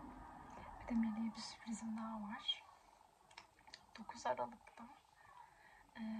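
A plastic makeup case clicks and rattles in a woman's hands.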